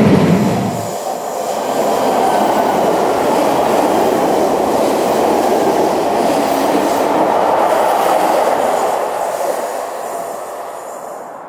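An electric train rolls by across a bridge.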